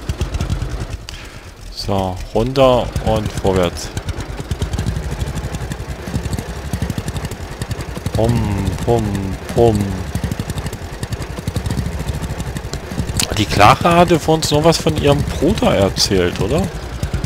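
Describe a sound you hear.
A tractor engine chugs steadily at low revs.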